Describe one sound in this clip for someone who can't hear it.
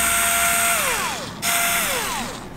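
A power drill whirs into metal.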